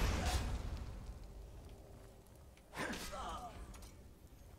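Flames roar and crackle in short bursts.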